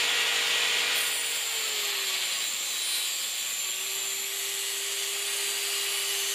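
A grinding wheel rasps against metal as the motor strains.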